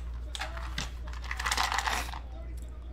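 Dice rattle in a plastic tray.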